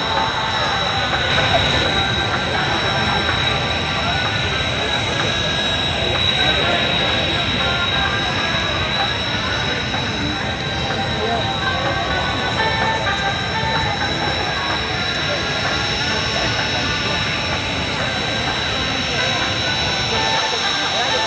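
Jet engines whine and roar steadily nearby, outdoors.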